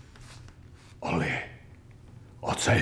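An elderly man calls out nearby in a soft, friendly voice.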